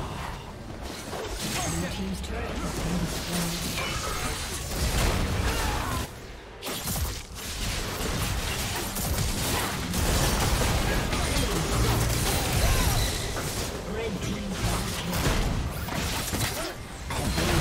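Game spells crackle and blast in a fast battle.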